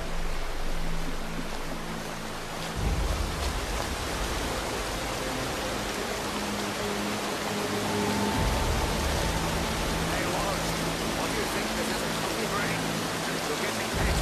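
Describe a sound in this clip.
A waterfall roars and splashes steadily nearby.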